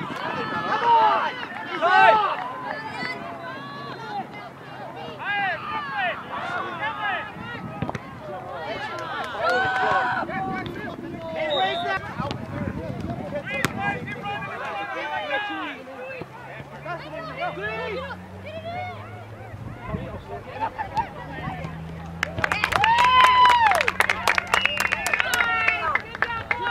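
Players shout to one another across an open field.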